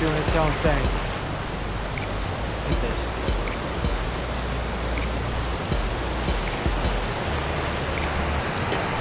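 A river rushes loudly nearby.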